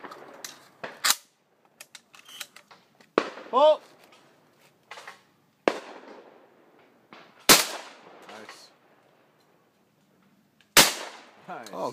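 A shotgun fires several loud shots that echo outdoors.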